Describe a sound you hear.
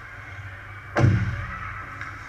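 A puck bangs hard against the boards.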